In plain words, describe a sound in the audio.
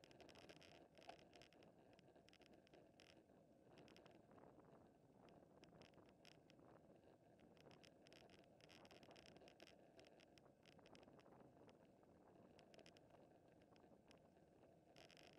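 Wind rushes steadily past close by.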